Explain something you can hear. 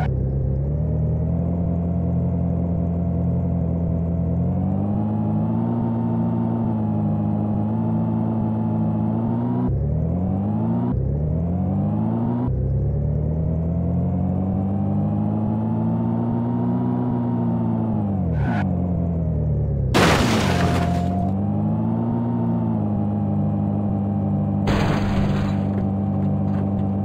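A small hatchback's engine accelerates through the gears, rising in pitch and dropping at each shift.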